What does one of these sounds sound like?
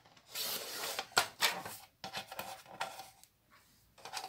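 A paper trimmer blade slides and cuts through card.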